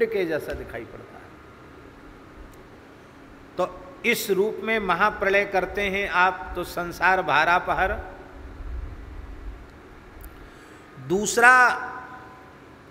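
An elderly man speaks with animation close to a microphone, with pauses.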